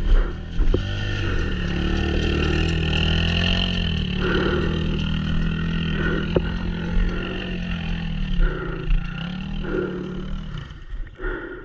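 A dirt bike engine putters and revs close by.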